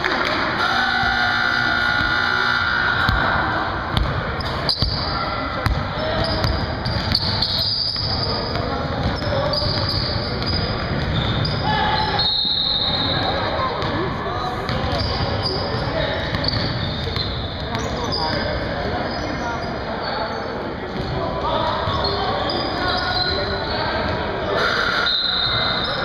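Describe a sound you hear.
Players shout and call out to each other across an echoing hall.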